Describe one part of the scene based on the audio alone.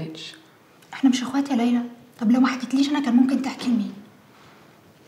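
A young woman with a firmer voice speaks, close by.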